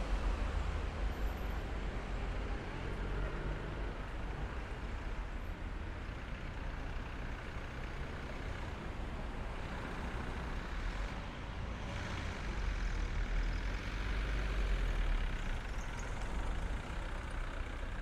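City traffic rumbles in the distance.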